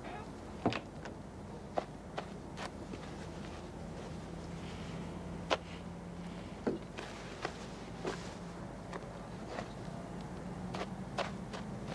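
Footsteps knock slowly on a wooden floor.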